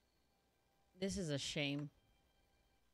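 A young woman speaks briefly and brightly into a microphone.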